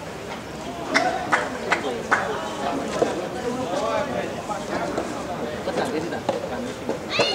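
A tennis racket strikes a ball with sharp pops.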